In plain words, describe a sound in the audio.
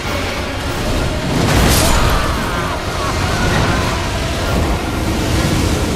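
A giant creature stomps heavily.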